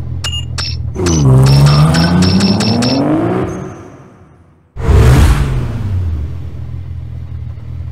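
A car engine revs loudly, then settles to a low idle.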